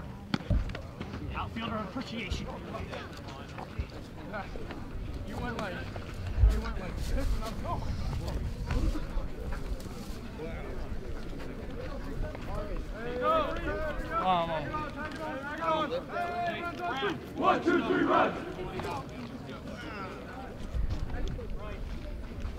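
A crowd of people talks and cheers outdoors at a distance.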